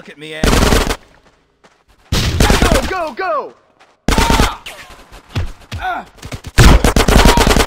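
Automatic rifles fire in loud rapid bursts.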